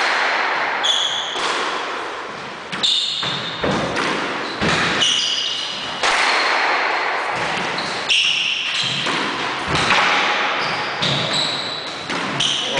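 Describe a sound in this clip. A squash ball smacks hard off the walls, echoing around an enclosed court.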